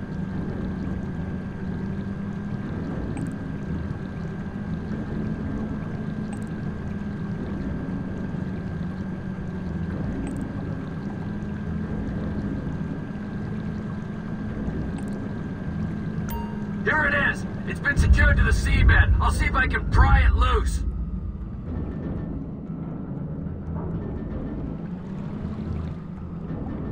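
A small submarine's motor hums steadily underwater.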